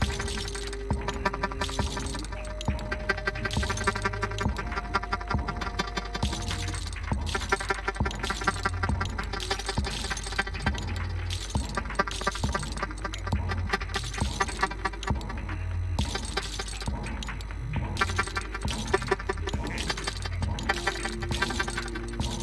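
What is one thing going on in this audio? Loud electronic music plays, with a pulsing beat and sustained synth tones.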